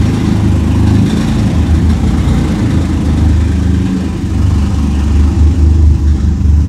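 A car engine revs and pulls away, echoing in a large concrete space.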